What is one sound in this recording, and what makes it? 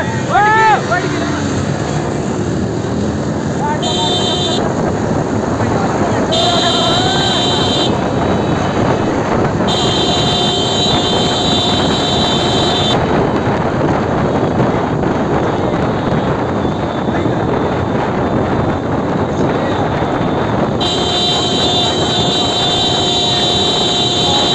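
Motorcycle engines roar close by.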